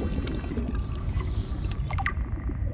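A handheld scanner hums.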